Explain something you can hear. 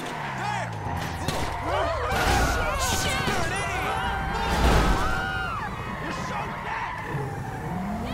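Car tyres screech while the car skids and swerves.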